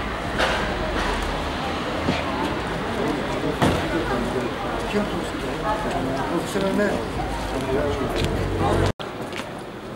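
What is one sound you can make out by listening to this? Stiff boards rustle and scrape as a man handles them on the ground.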